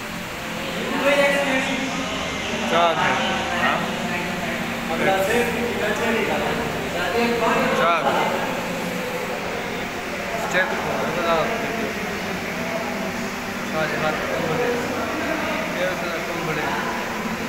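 Young men talk and call out nearby.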